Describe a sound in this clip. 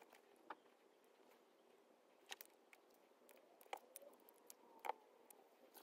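Small metal parts click between fingers.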